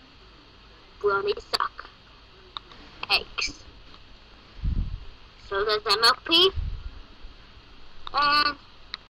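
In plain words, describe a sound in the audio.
A boy speaks close to a phone's microphone, in short bursts.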